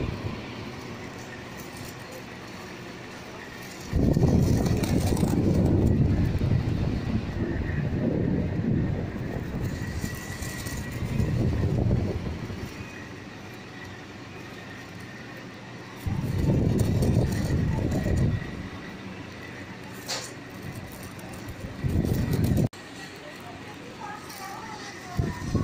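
An electric fan whirs steadily close by.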